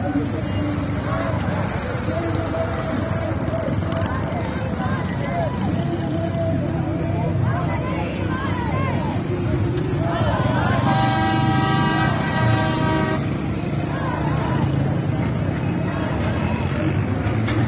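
Men talk loudly in an outdoor crowd.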